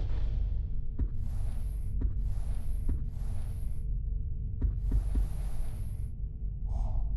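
Soft interface clicks sound as menu selections change, each followed by a brief airy swish.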